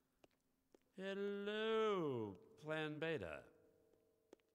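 A man exclaims with theatrical delight.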